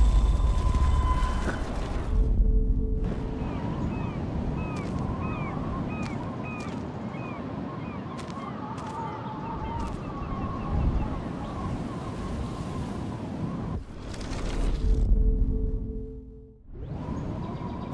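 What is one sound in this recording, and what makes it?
Gentle waves wash against a shore.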